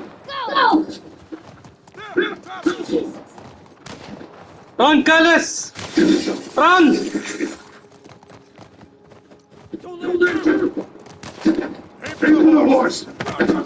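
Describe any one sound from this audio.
A horse gallops with muffled hoofbeats through snow.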